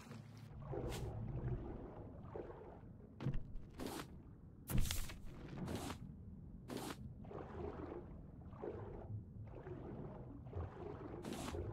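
Water swishes and bubbles as a swimmer moves underwater.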